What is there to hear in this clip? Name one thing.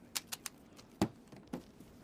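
A hand sets something down in a foam-lined case with a soft thud.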